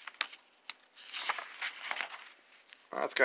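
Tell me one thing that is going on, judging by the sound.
A book page is turned with a papery swish.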